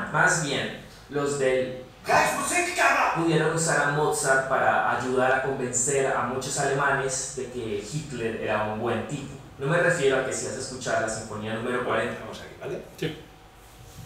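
A young man speaks with animation through a loudspeaker on an online call.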